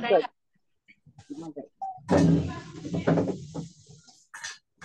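Girls talk and bustle over an online call.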